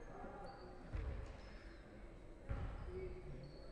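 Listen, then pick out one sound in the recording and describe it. A basketball bounces on a wooden floor with hollow thuds.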